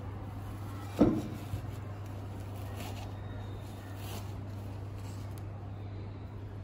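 Steel wool rustles and crackles as fingers pull it apart.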